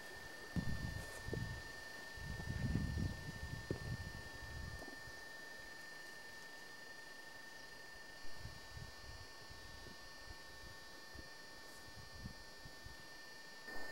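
A river flows and rushes gently nearby.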